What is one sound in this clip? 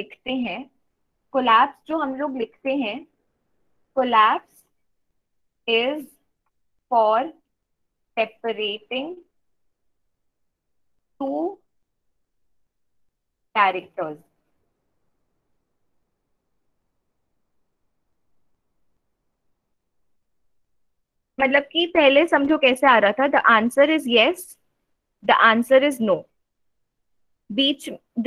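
A young woman speaks calmly in short phrases through a microphone, as if on an online call.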